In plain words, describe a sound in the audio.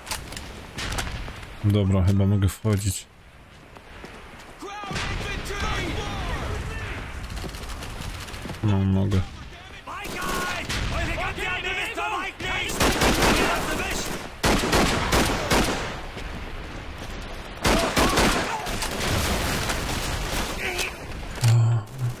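A rifle's metal parts click and clack during reloading.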